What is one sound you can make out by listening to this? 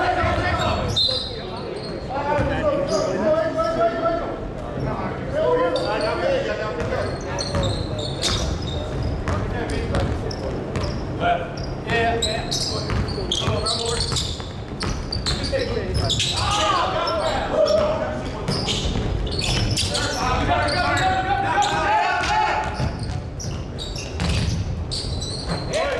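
A basketball bounces on a hard court in a large echoing gym.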